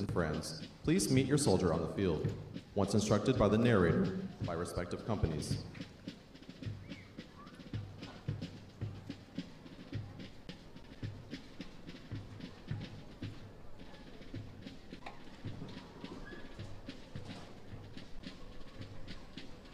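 A crowd of people murmurs quietly nearby.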